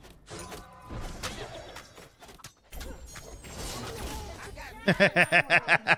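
Video game combat effects whoosh and crackle.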